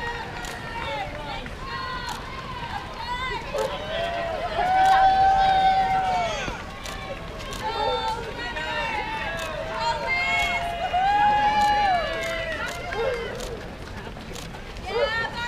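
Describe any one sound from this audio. Many runners' footsteps patter on pavement nearby.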